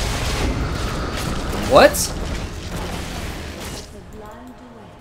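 Magic blasts whoosh and crackle in a video game fight.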